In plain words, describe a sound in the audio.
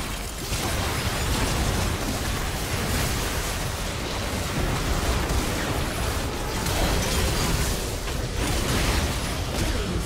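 Spell effects whoosh and blast in a fast game fight.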